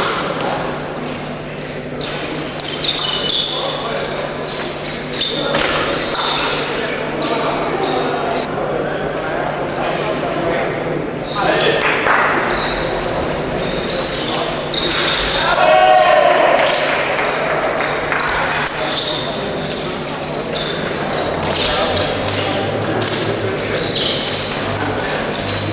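Fencers' shoes squeak and stamp on the floor.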